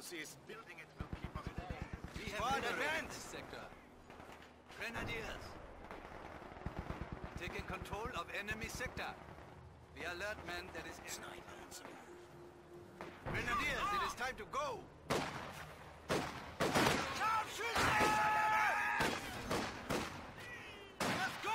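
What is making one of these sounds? Machine guns fire in rapid bursts.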